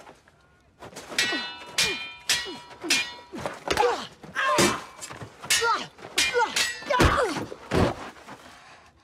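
Swords clash and clang with sharp metallic rings.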